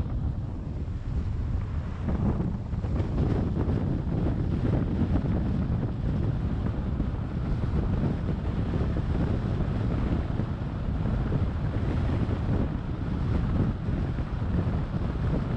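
Wind buffets past a moving car.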